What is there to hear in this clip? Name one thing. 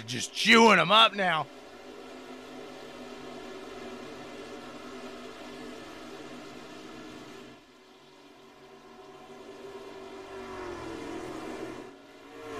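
Racing truck engines drone steadily.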